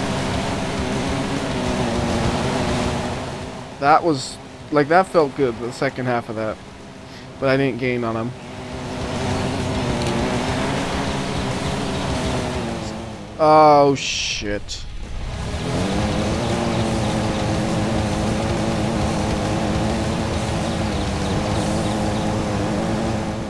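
An off-road truck's engine drones steadily.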